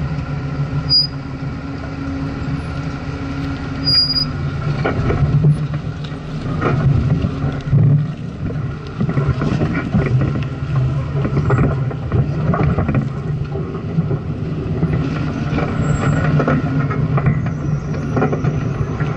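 An off-road vehicle engine grows louder.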